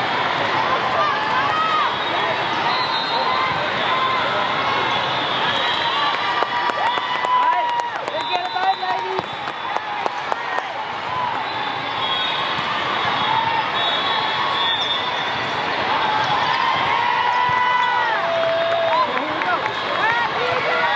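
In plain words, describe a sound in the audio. Sneakers squeak sharply on a court floor.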